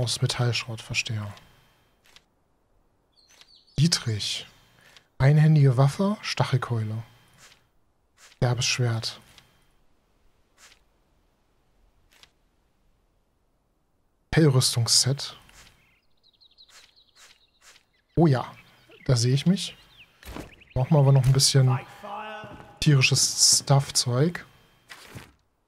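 A man talks casually into a close microphone, with pauses.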